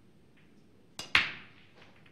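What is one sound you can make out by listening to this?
A cue strikes the cue ball with a sharp crack.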